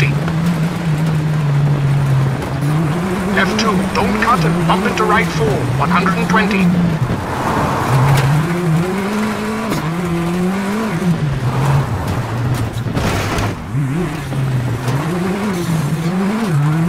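A rally car engine revs up and down as the car races.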